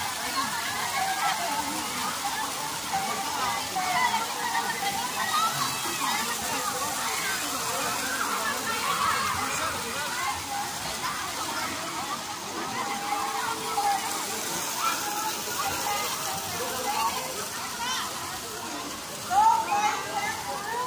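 A crowd of children and adults shouts and chatters excitedly.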